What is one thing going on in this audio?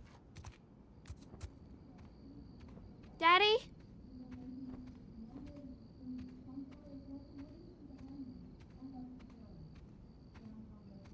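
Soft footsteps tread slowly.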